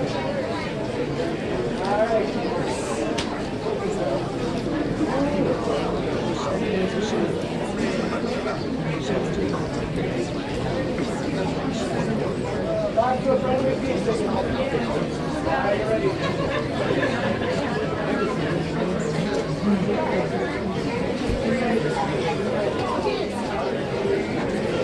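A brass band plays a tune.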